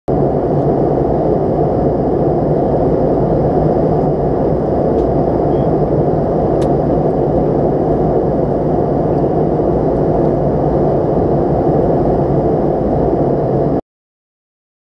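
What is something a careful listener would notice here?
A jet airliner's cabin roars with a steady, low engine drone.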